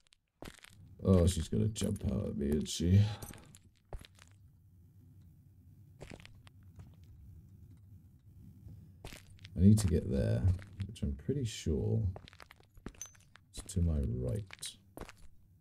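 A man speaks close to a microphone, in short bursts.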